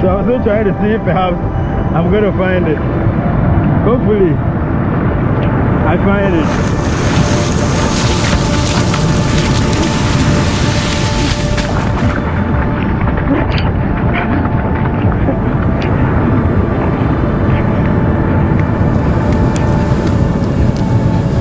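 Waves crash and wash over the shore.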